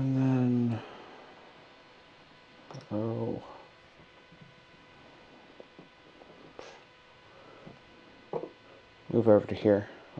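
Small plastic figures tap and click as they are set down on a tabletop.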